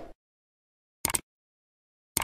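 A mouse button clicks once.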